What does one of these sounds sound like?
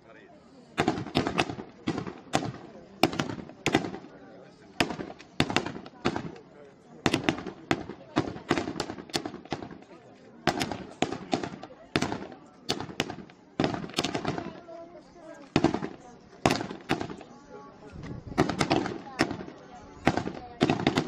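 Fireworks burst and crackle repeatedly, loud and booming.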